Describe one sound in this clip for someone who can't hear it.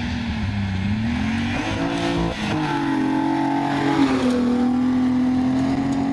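Gravel sprays and crunches under a car's tyres.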